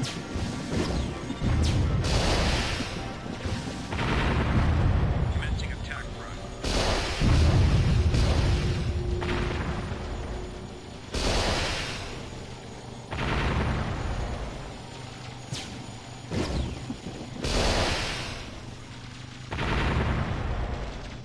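Cannons fire in repeated heavy booms.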